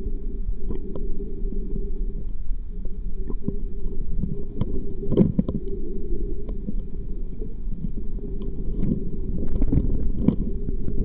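Water murmurs with a low, steady underwater rumble.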